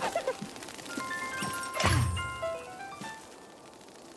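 Chimes ring out in a bright rising run.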